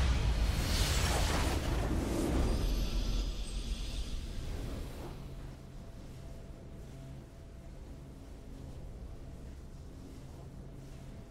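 A game's victory fanfare swells with a bright whoosh and then fades to a low hum.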